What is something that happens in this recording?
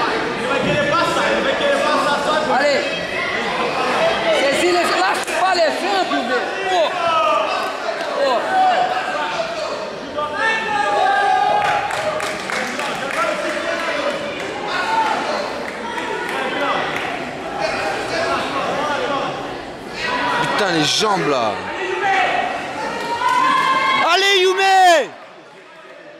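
A crowd of spectators shouts and cheers with animation in a large echoing hall.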